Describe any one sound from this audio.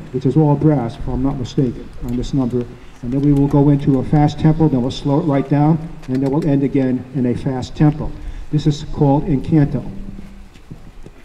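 A man speaks through a loudspeaker outdoors.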